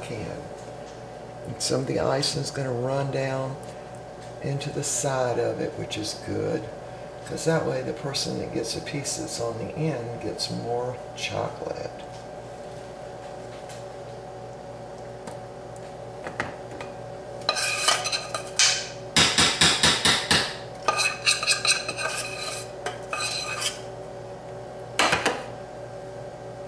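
A metal spoon scrapes and taps against a baking pan.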